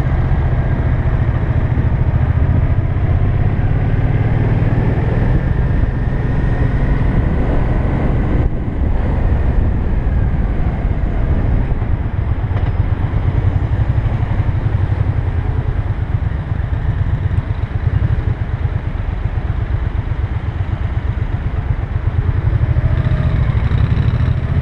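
Wind rumbles against the rider.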